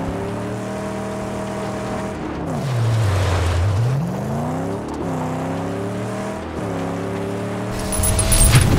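A buggy's engine roars and revs up and down.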